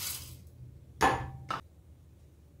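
A plastic lid clicks onto a metal jar.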